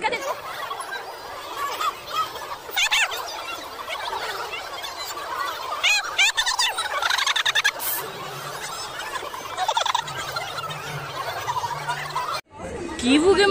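A crowd of children and adults chatters and calls out outdoors.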